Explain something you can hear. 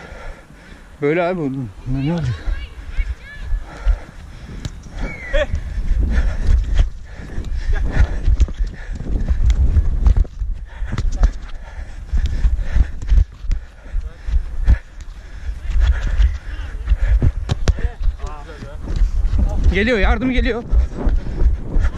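Men shout to each other outdoors.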